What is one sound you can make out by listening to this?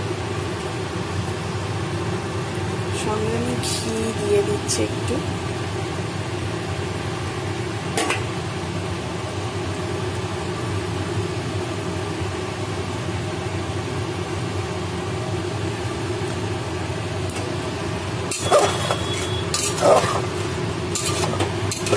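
A gas burner hisses and roars steadily under a pot.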